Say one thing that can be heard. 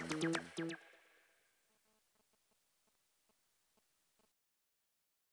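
Electronic dance music plays and quickly fades out.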